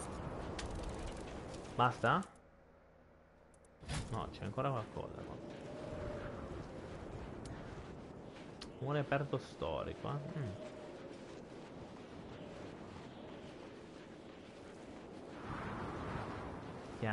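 Footsteps run on sand.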